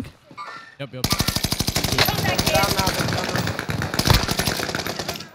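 Automatic gunfire rattles rapidly.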